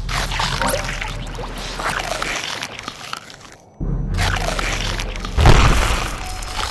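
Video game music and sound effects play loudly, with crunching bites and bursts.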